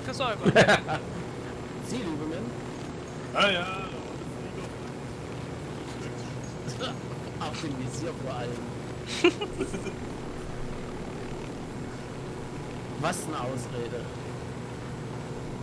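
A helicopter's engine drones and its rotor whirs steadily.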